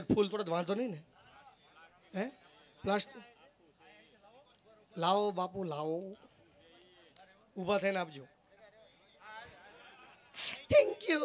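A young man sings and speaks expressively into a microphone, heard through a loudspeaker.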